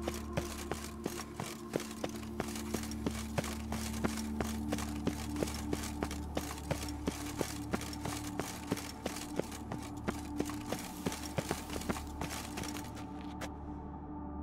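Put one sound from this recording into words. Quick footsteps run across a hard stone floor.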